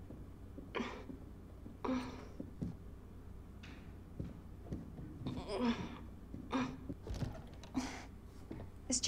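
Footsteps tread slowly on a wooden floor.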